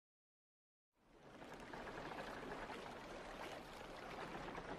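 Oars splash in water as boats are rowed.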